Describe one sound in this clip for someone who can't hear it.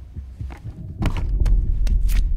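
A hard case is set down with a thud on the floor.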